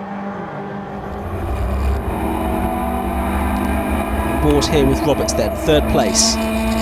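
A racing car engine roars loudly from inside the car.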